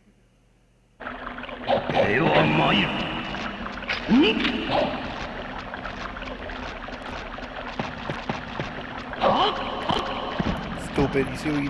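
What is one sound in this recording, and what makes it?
Swords swish and clang in a fight.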